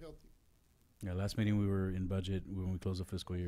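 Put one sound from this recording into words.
A man speaks loudly and steadily through a microphone.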